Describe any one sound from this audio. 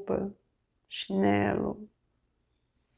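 A middle-aged woman speaks calmly close to a microphone.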